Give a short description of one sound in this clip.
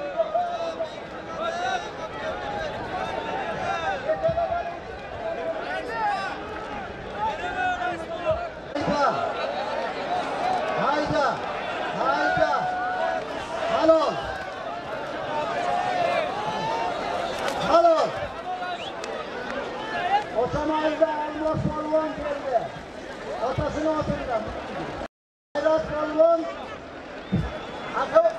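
A large crowd of men shouts and chatters outdoors.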